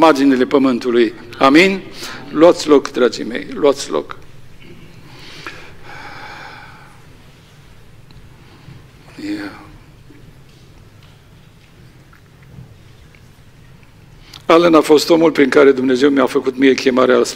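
A middle-aged man reads out calmly through a microphone in an echoing room.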